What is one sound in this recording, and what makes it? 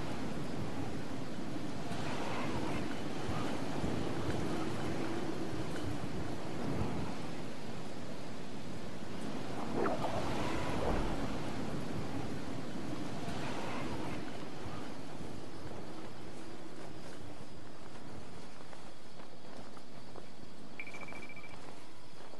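Wind rushes steadily past during a long glide.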